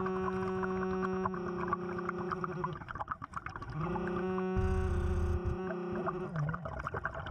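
A metal detector beeps with a steady humming tone underwater.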